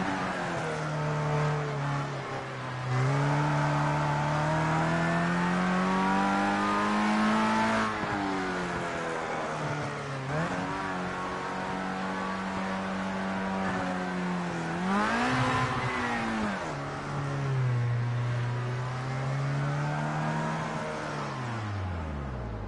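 A racing car engine drones loudly, rising and falling in pitch as the car speeds up and slows down.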